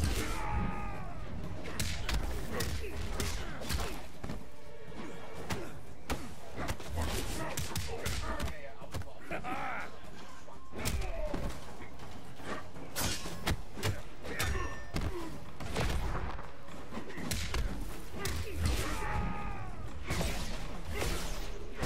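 A magic blast whooshes.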